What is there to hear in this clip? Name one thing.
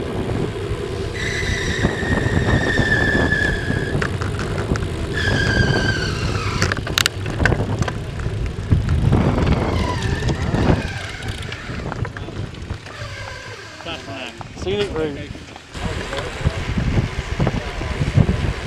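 Wind rushes loudly past as a bicycle rides along outdoors.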